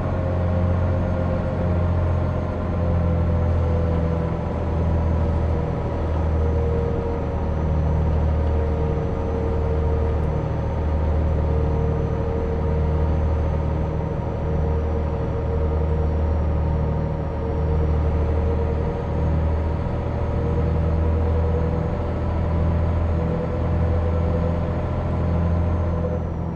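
A bus engine drones steadily, with a low hum that gently swells and dips.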